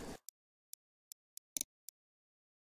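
Soft menu clicks tick several times.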